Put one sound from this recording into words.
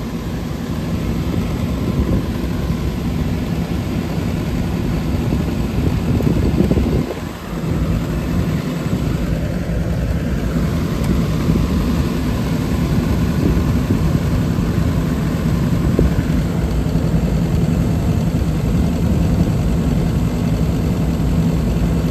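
A heating unit hums and rumbles steadily close by.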